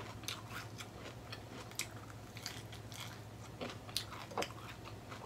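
Fingers and cutlery click and scrape against plates.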